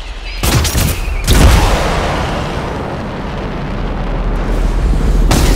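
A swirling energy portal roars and whooshes steadily.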